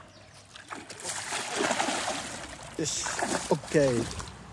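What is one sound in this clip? A fish thrashes and splashes loudly at the water's surface.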